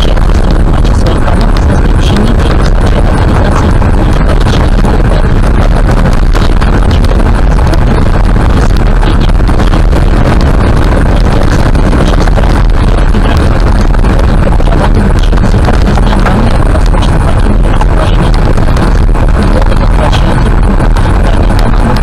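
A car drives steadily along a rough road, rumbling loudly.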